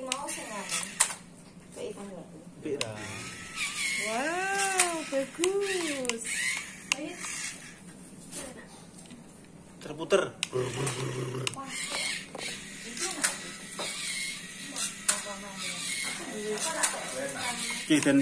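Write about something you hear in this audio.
A small toy motor whirs.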